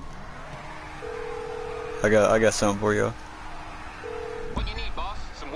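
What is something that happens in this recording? A phone rings with a steady electronic tone.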